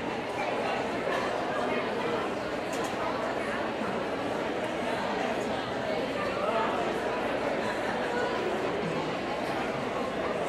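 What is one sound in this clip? A concert band plays music in a large, echoing hall.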